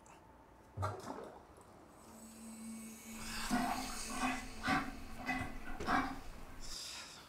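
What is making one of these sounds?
Water splashes in a bathtub.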